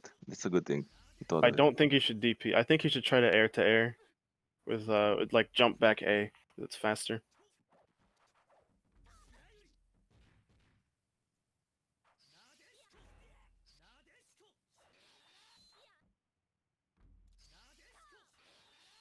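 Swords clang and swish in quick fighting blows.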